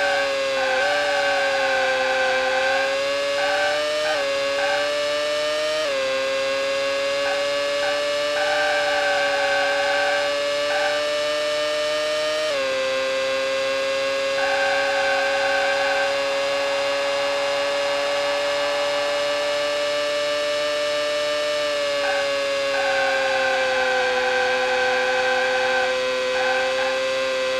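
A racing car engine whines steadily, its pitch jumping at each gear change.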